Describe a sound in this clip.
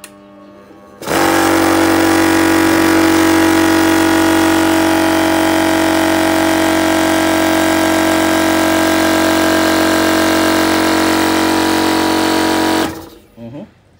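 A compressor motor hums loudly and steadily, then stops.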